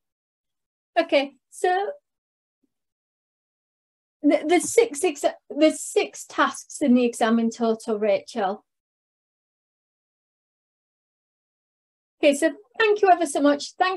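A young woman speaks through an online call microphone in short phrases.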